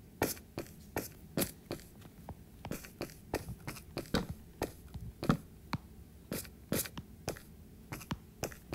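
Footsteps crunch on stone at a walking pace.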